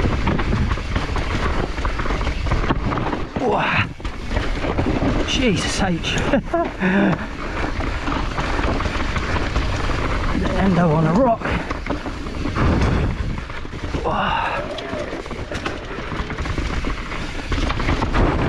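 A bicycle rattles and clatters over bumps.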